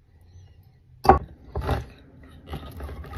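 A hand-held can opener clicks and grinds around a tin can.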